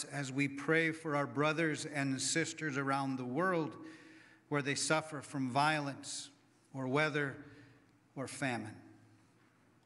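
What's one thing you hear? A middle-aged man speaks calmly and slowly through a microphone in a reverberant room.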